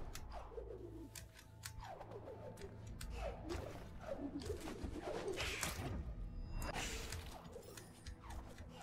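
Airy whooshes sound as a small creature leaps through the air.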